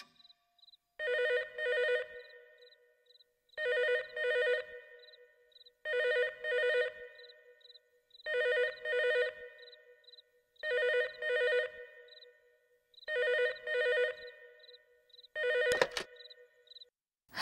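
A telephone rings in double bursts.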